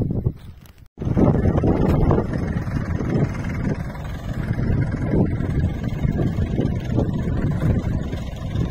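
A tractor engine idles with a steady rumble nearby.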